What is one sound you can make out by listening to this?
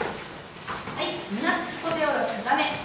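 Young children call out and talk excitedly.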